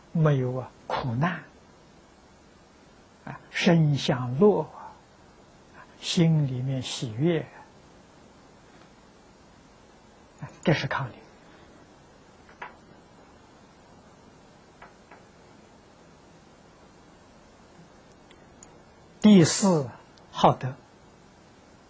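An elderly man speaks calmly into a close microphone, in short phrases with long pauses.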